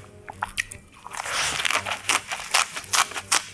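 Crisp lettuce leaves crunch as a young woman bites into a wrap.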